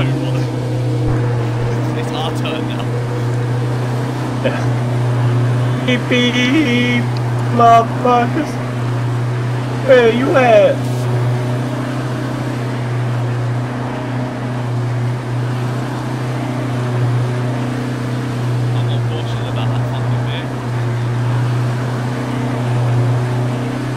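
A car engine drones steadily as the vehicle drives along.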